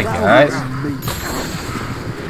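Flames burst and roar with a whoosh.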